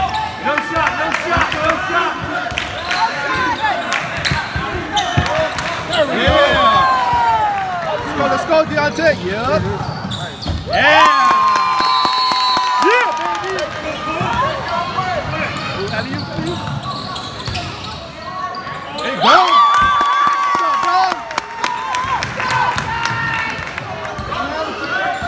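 A crowd of spectators murmurs and calls out in a large echoing hall.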